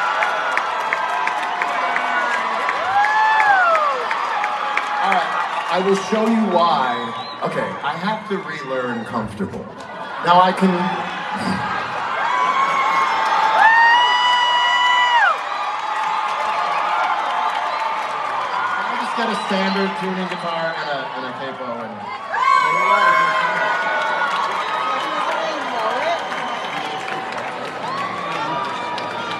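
An acoustic guitar strums along through loudspeakers.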